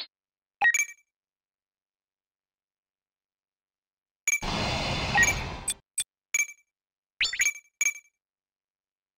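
Short electronic beeps chirp in quick bursts.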